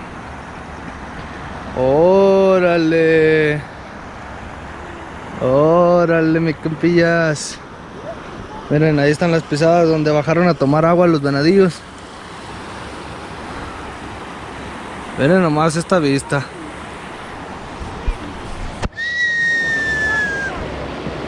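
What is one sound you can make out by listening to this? A river flows and rushes over rocks.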